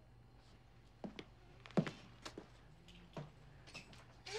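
A man's footsteps thud on a hard floor.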